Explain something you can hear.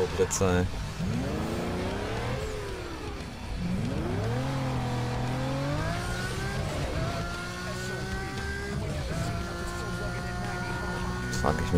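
A car engine revs up and roars, rising in pitch with each gear change.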